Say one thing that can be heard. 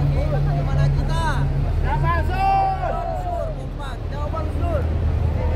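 A man's voice calls out loudly to the crowd.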